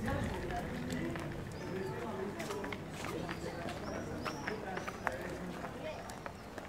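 Men and women chat casually a short way off, outdoors.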